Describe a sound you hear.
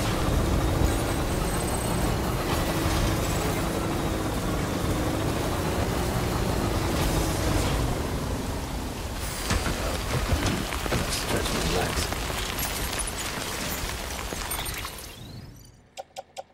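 A vehicle engine rumbles as it climbs a rough slope.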